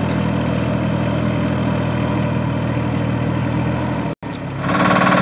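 A small dumper's diesel engine hums steadily as it drives off.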